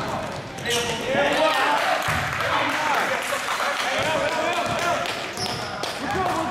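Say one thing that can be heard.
Several people shout and cheer in a large echoing gym.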